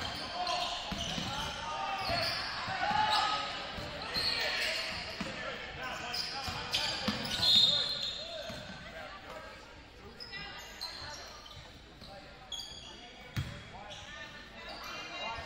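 A crowd murmurs and calls out from the stands.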